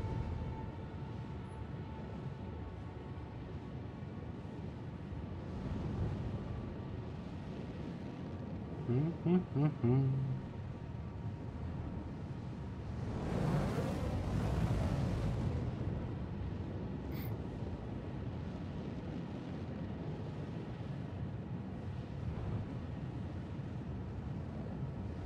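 A spacecraft's engines rumble steadily.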